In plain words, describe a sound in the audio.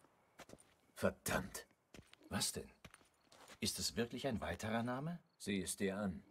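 A man asks a question in a low, calm voice.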